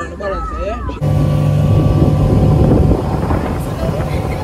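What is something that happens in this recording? A boat engine roars loudly.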